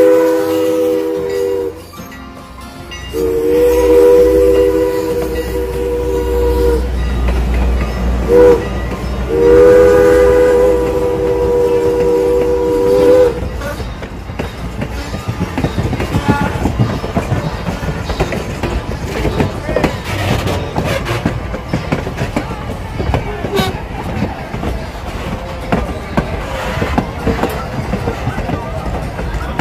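Train wheels rumble and clack over rail joints as carriages roll past close by.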